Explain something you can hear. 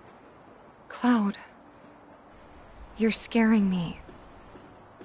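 A young woman speaks softly and worriedly.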